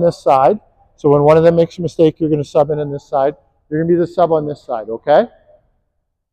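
A man speaks calmly nearby in an echoing hall.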